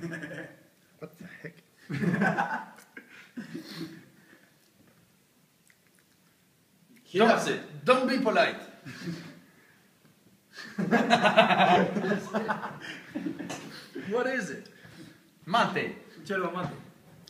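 A middle-aged man laughs heartily close by.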